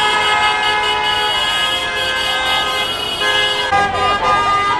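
Traffic rumbles steadily along a busy road.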